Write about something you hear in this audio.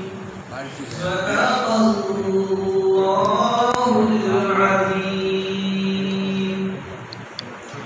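A young man chants melodiously into a microphone, heard through a loudspeaker in an echoing room.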